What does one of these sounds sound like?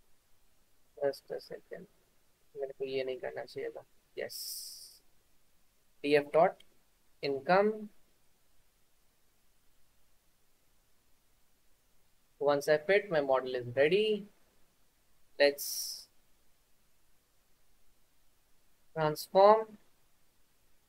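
A young man speaks calmly in short phrases over an online call.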